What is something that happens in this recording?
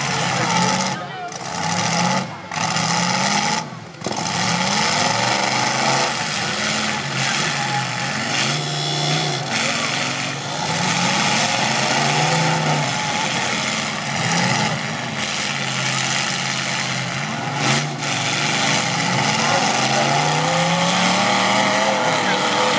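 A large crowd cheers outdoors.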